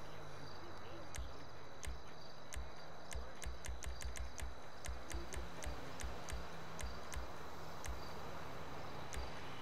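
Soft menu clicks tick repeatedly.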